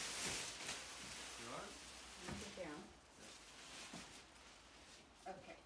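Plastic sheeting rustles and crinkles as a framed panel is moved.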